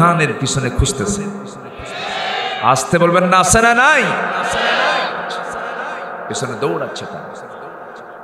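A man preaches with passion into a microphone, his voice rising into a chanting tone through loudspeakers in a reverberant space.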